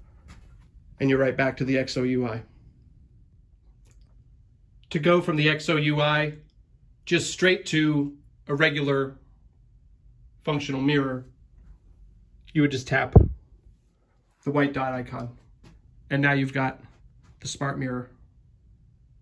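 A man speaks calmly and closely, in short phrases with pauses.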